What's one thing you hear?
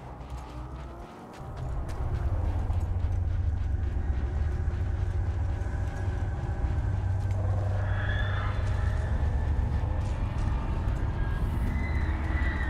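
Footsteps run quickly over sand and gravel.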